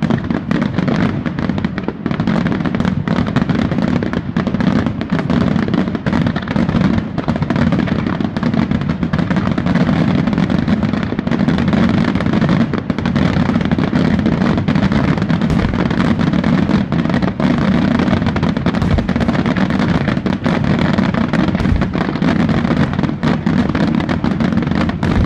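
Fireworks crackle and boom in rapid bursts, heard from a distance.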